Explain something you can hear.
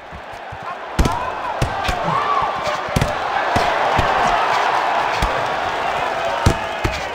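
A crowd cheers and roars, growing louder.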